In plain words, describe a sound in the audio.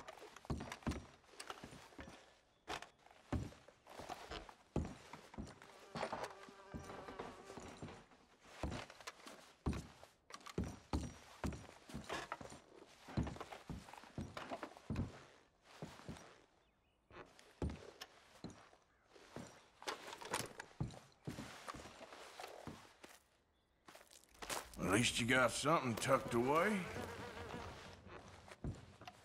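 Footsteps thud across wooden floorboards.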